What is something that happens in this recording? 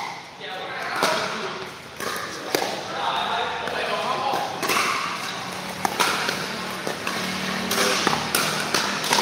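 Paddles smack a plastic ball back and forth with sharp, hollow pops in an echoing indoor hall.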